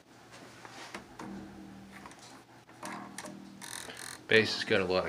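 A bass guitar string is plucked and rings low and steady.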